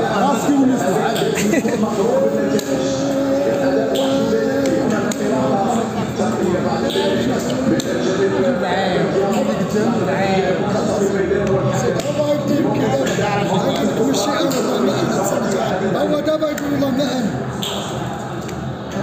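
Plastic game pieces click and slide on a wooden board.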